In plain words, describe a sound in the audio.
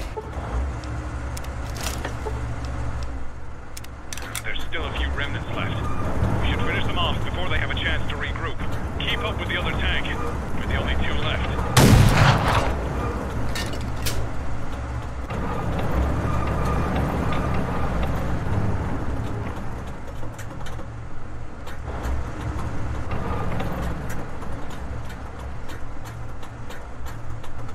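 A tank engine rumbles low and steadily as the tank rolls along.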